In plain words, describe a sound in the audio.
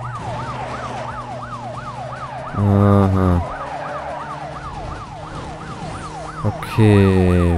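A police siren wails rapidly up and down.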